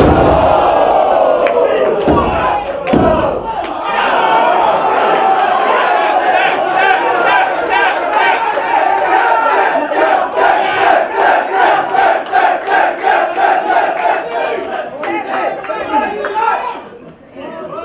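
A crowd cheers and chants loudly in a rhythm.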